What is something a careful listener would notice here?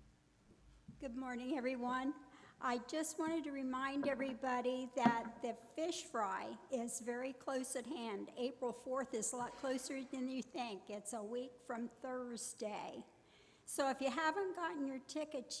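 A middle-aged woman speaks clearly and with animation into a microphone.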